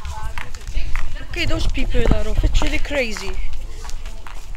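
A man and a woman talk outdoors at a distance.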